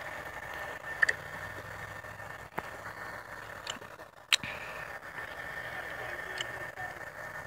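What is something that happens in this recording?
Short electronic clicks and beeps sound as game menus open and close.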